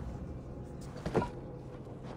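A hand thumps against a stone wall.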